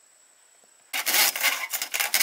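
A hammer knocks on bamboo poles.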